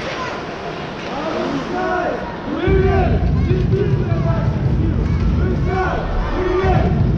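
Ice skates scrape and swish across the ice in a large echoing arena.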